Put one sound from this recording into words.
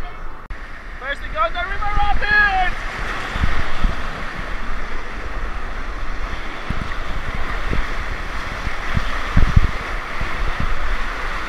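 Water rushes and splashes down a waterslide chute.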